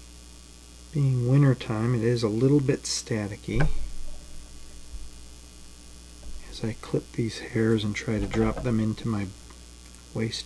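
A middle-aged man speaks calmly, close to the microphone.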